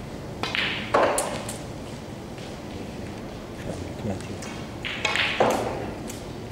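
Snooker balls knock together.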